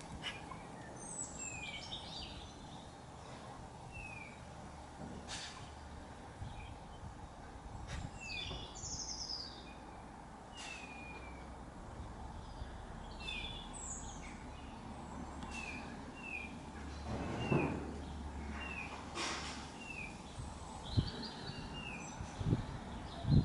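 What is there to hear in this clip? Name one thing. Small birds chirp and twitter nearby outdoors.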